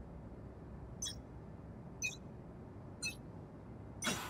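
A short electronic beep sounds once a second.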